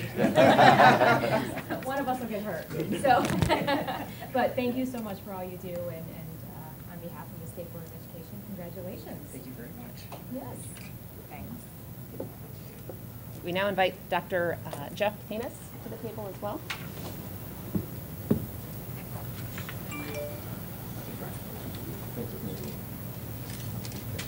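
A crowd murmurs in a large room.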